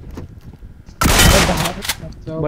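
Rapid gunshots rattle close by.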